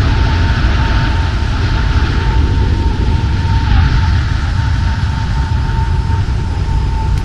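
Jet engines roar and whine steadily.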